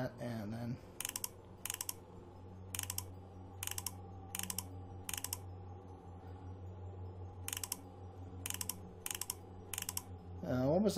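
Clock hands click sharply as they are turned, one step at a time.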